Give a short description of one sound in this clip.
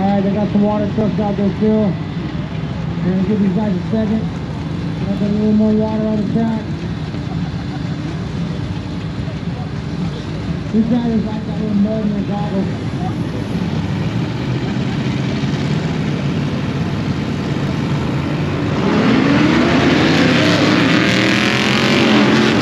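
Off-road vehicle engines rev and drone across open ground.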